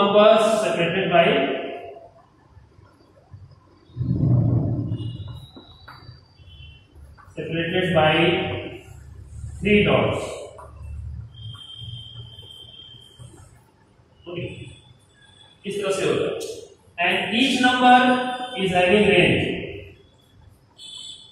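A man speaks calmly and clearly, like a teacher explaining, in short bursts with pauses.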